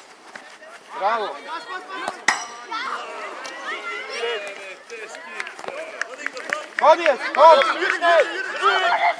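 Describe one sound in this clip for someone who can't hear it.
Young children shout and call out excitedly outdoors.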